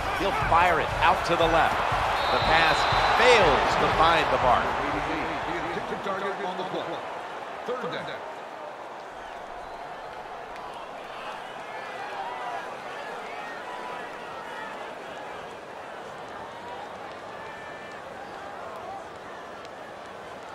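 A stadium crowd cheers loudly, then fades to a low murmur.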